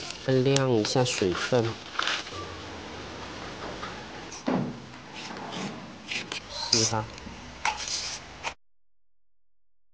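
Palm leaves rustle as they are torn apart.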